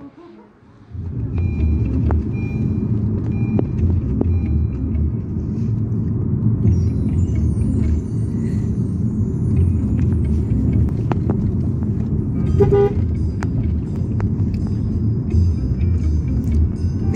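A car engine rumbles low and steady from inside the car.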